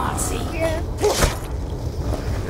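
A knife slashes into a zombie with a wet thud.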